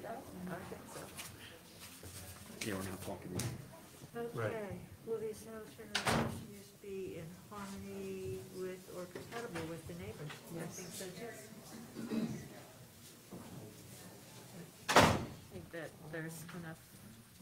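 Several adults talk at once in a room with some echo.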